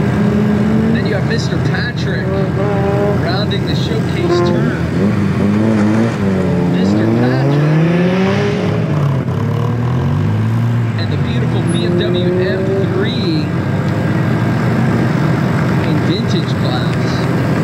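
Tyres squeal on pavement as a car corners hard.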